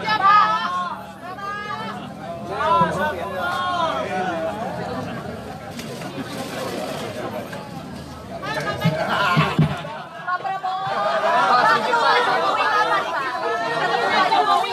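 A crowd of men talk and call out all at once, close by.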